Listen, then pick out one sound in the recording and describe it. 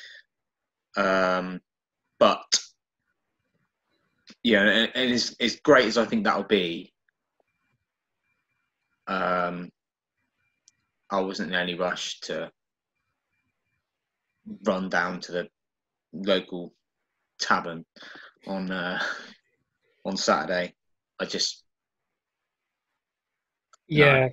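A young man talks with animation over an online call, in short bursts.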